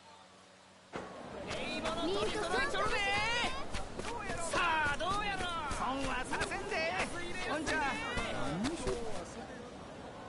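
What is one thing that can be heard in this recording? Street vendors and townspeople call out and chatter lively.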